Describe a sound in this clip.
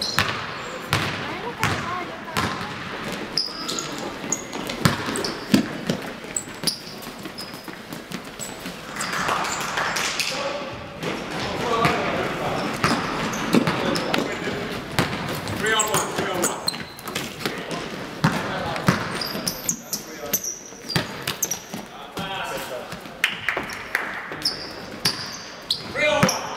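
Basketballs bounce on a hard floor in a large echoing hall.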